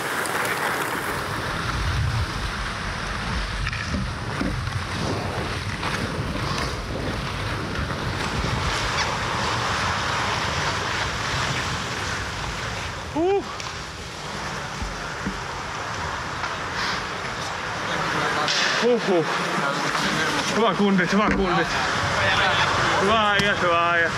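Ice skates scrape and carve across an ice rink.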